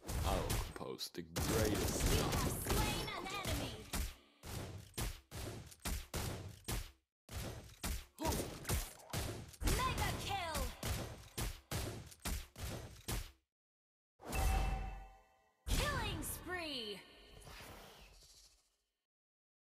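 Video game combat effects clash, zap and burst in quick succession.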